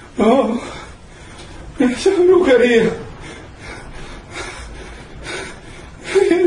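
A man speaks calmly, heard through a microphone in a small room.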